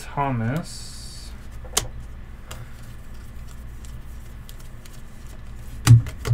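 Trading cards flick and slide against each other.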